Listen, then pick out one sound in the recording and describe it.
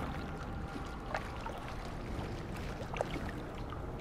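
Water splashes around someone wading.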